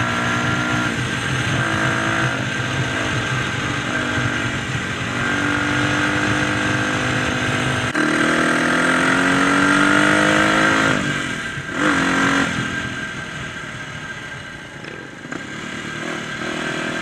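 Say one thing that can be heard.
A dirt bike engine roars and revs up and down at close range.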